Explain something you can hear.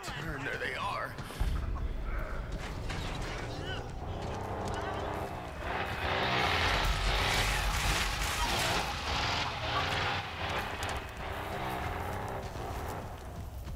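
Footsteps hurry over wooden boards and grass.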